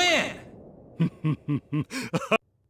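Short electronic game tones chime in a quick run.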